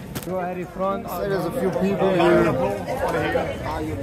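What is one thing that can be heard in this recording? A crowd chatters loudly.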